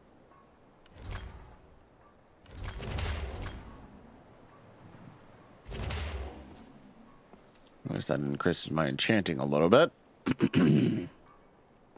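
A magical shimmering whoosh sounds several times.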